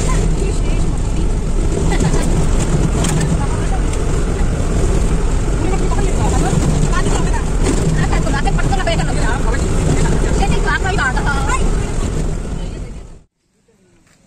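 A vehicle rumbles steadily along a road with wind noise.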